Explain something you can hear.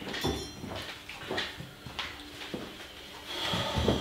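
Footsteps approach on a hard floor.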